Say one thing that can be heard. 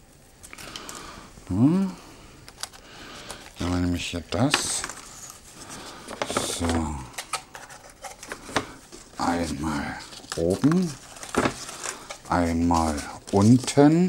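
Plastic gift wrap crinkles and rustles.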